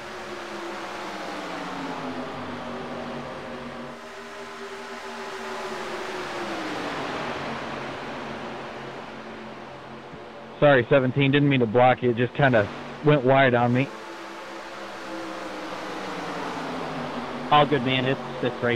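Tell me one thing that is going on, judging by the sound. Race car engines roar steadily, rising and falling in pitch as the cars pass.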